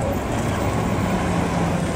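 A city bus pulls away.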